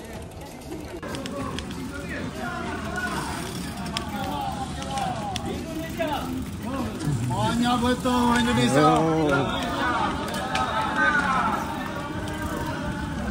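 Bicycle tyres rattle over cobblestones.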